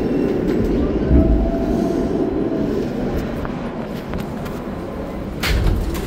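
A subway train brakes and slows to a stop.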